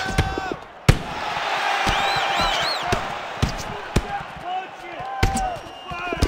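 Heavy punches land with sharp thuds.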